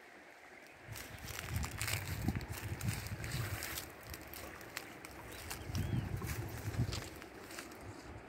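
Wind gusts outdoors and rustles leaves.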